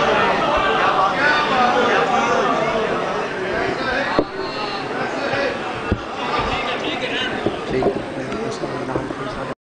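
A man speaks with passion through a loudspeaker in a large echoing hall.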